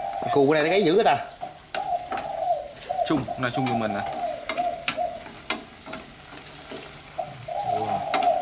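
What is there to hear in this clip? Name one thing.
Utensils clink and scrape against metal pots.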